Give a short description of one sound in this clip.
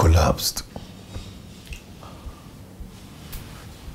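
A young woman speaks weakly and quietly nearby.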